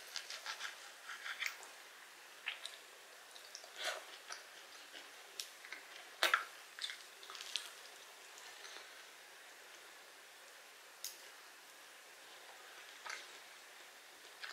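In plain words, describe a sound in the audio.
A knife scrapes and clinks against a plate.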